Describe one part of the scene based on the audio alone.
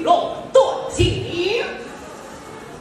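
A woman sings out in a high, gliding voice.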